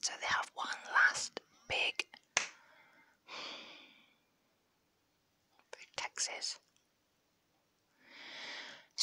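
A young woman whispers softly and very close to a microphone.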